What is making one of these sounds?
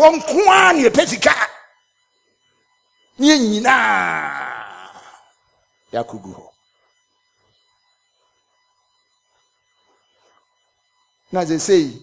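A middle-aged man preaches loudly and passionately into a microphone.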